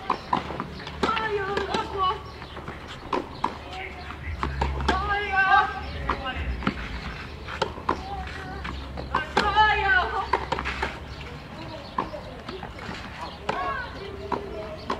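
Young women call out to each other on a tennis court.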